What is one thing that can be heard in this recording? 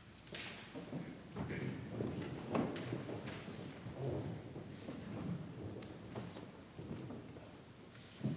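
Soft footsteps and rustling come as singers shuffle into place.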